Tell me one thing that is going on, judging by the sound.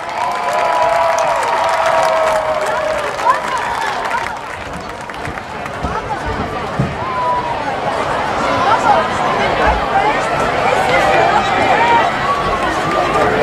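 A crowd cheers and whistles nearby.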